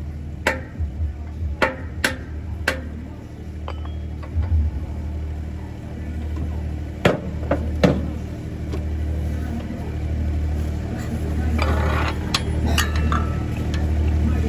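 Heavy metal parts clank and knock together close by.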